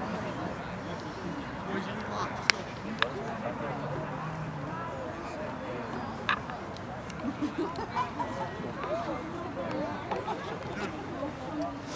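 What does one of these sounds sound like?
Young men call out to each other across an open field outdoors.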